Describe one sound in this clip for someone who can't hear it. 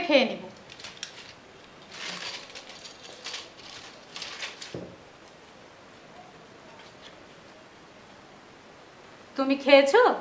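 A woman speaks nearby in a calm voice.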